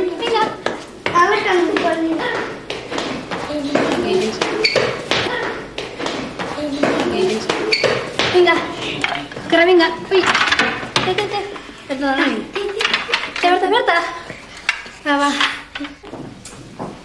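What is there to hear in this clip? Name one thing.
Children sing together.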